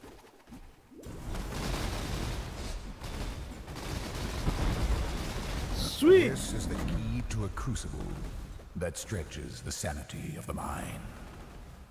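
Fiery spells roar and explode in loud bursts.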